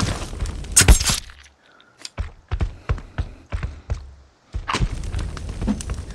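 A bowstring snaps as an arrow is shot.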